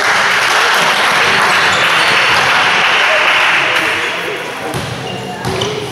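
Players' shoes squeak on the floor.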